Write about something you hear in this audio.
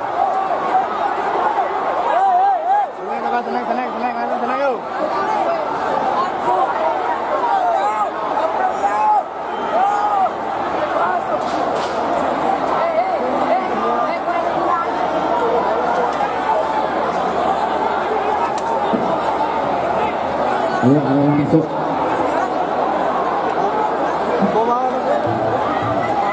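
Men yell close by amid the commotion.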